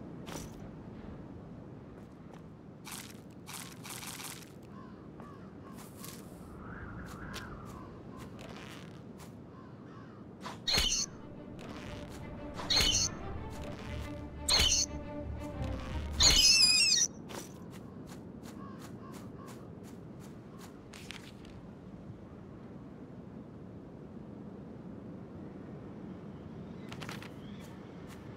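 Footsteps pad softly on grass.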